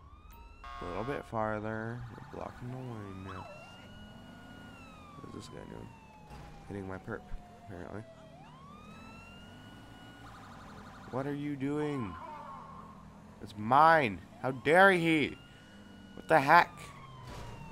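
A police horn blasts in short, sharp bursts.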